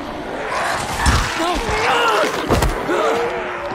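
A blade slashes and thuds into flesh.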